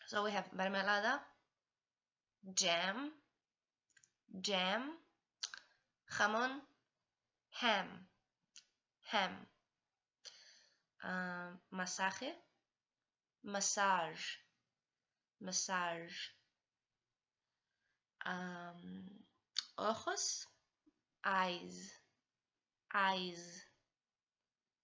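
A young woman speaks calmly in short phrases, close to the microphone.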